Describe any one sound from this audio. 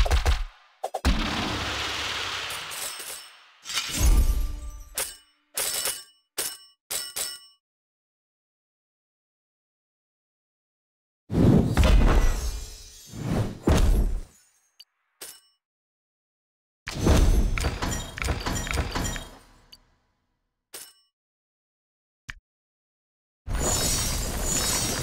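Bright game sound effects chime, whoosh and jingle in bursts.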